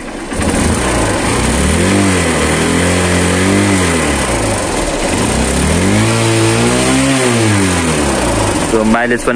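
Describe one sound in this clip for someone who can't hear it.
A motorcycle engine revs up and down several times, close by.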